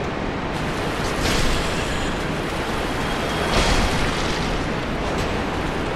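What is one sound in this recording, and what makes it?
Blades slash and strike with sharp hits.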